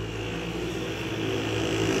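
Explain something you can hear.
A motor scooter rides past.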